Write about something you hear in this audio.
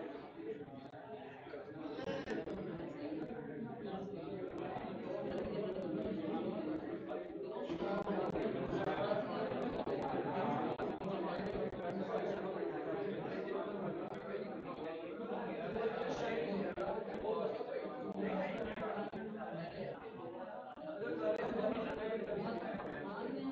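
A crowd of spectators murmurs and chatters nearby.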